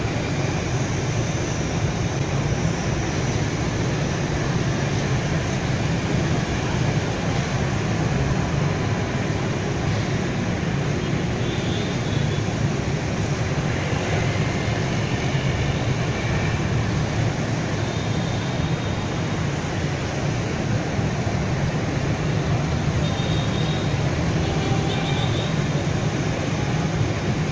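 Motorbikes and cars hum and drone steadily along a busy road.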